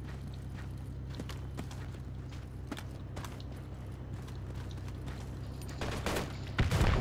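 Boots crunch quickly on dry ground.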